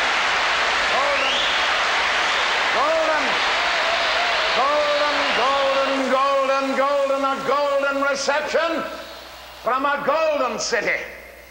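An elderly man sings out loudly with long held notes.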